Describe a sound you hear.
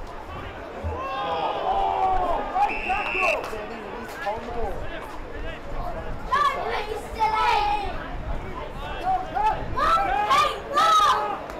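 Men shout across an open field.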